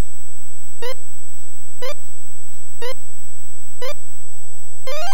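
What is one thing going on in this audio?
Short rising electronic blips sound once a second.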